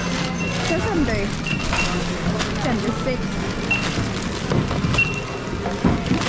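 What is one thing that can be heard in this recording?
A checkout scanner beeps now and then.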